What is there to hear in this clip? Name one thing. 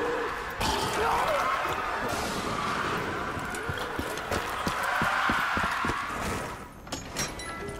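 Footsteps crunch over debris.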